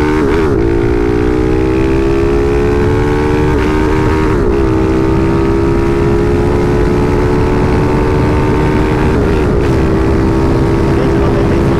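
A motorcycle engine hums steadily, rising in pitch and dropping at each gear change.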